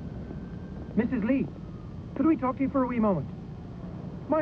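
A young man speaks briefly outdoors.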